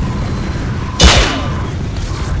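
A loud explosion booms once.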